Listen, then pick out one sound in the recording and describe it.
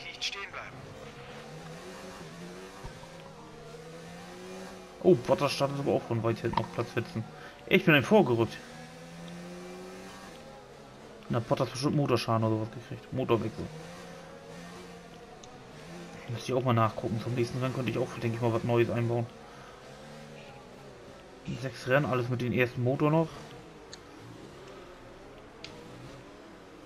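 A racing car engine drones and revs as the car drives along.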